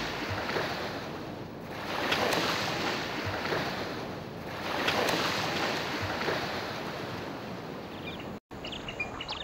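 Waves wash and break on the shore in slow surges.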